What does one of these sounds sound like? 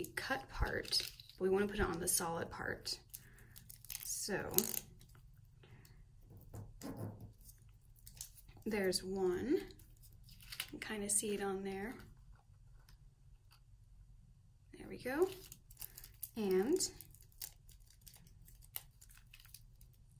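Paper rustles and crinkles softly as it is handled.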